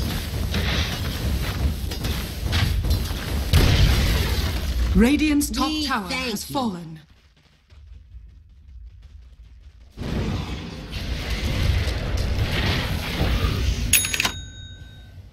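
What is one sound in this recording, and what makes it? Weapons clash and strike in a fantasy battle game.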